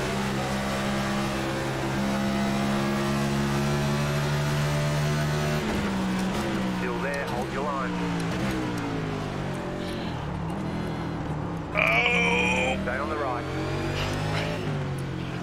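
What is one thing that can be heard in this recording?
A racing car engine drones loudly, its pitch rising and falling with gear changes.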